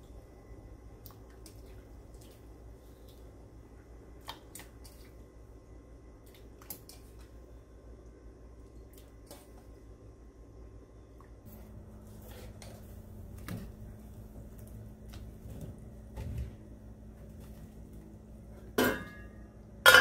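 Water boils and bubbles in a pot.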